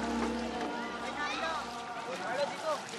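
Water splashes and scrapes as boys push it across wet ground.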